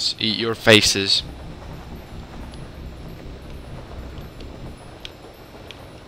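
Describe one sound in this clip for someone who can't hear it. Wind rushes past a gliding figure.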